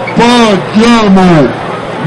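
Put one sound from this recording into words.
A young man shouts loudly nearby.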